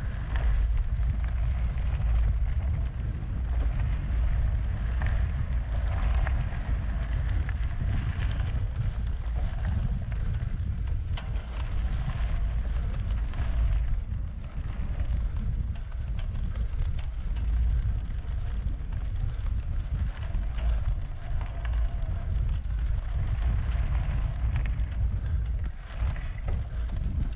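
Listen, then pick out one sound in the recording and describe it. Bicycle tyres rumble and rattle over a bumpy dirt track.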